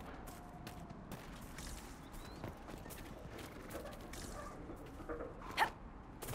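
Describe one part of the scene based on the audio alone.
Footsteps patter quickly over grass.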